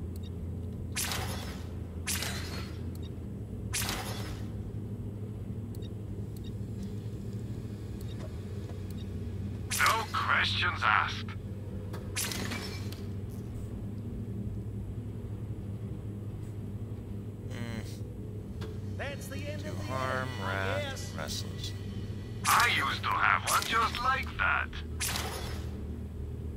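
A game menu gives short clicks and chimes.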